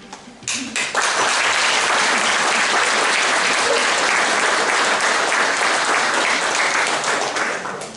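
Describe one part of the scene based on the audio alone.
An ensemble strums zithers together in a lively, bright rhythm.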